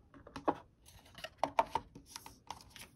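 Small paper packets crinkle under fingers.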